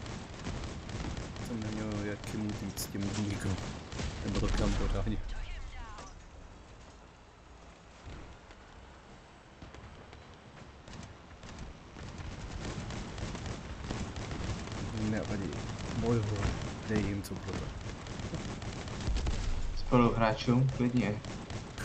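Guns fire and explosions boom.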